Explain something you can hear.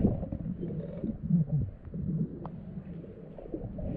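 Swim fins splash in shallow water.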